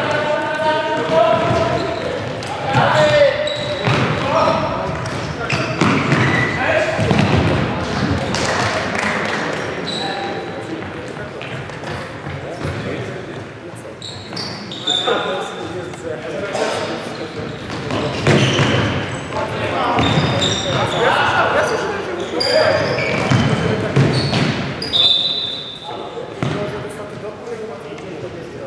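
A futsal ball thuds as players kick it in a large echoing hall.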